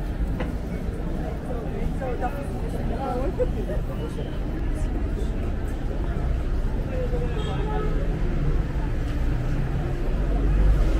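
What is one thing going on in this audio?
People chatter in a crowd walking nearby outdoors.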